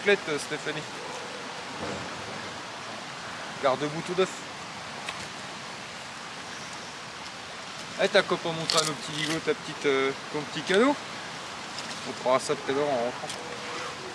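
A man talks calmly close by, outdoors.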